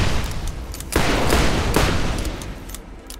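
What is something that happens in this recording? A burst of energy whooshes and crackles.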